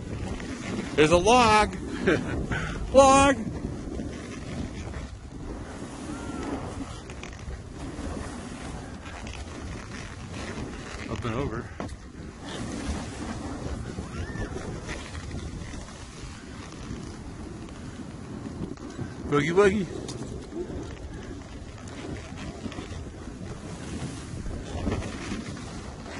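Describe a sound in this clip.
Skis hiss and scrape over soft snow close by.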